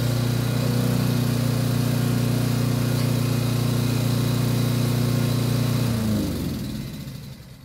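A lawnmower engine runs loudly nearby, then winds down and stops.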